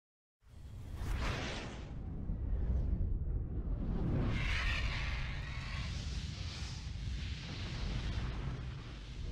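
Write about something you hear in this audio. Flames roar and whoosh past.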